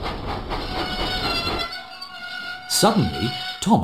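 Steam engine brakes squeal as the engine slows to a stop.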